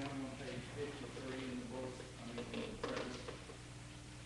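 A choir sings a quiet, sustained line in an echoing space.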